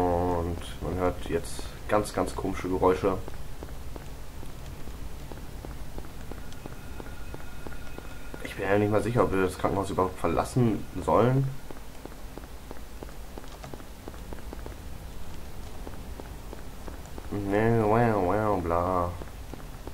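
Footsteps thud steadily on pavement.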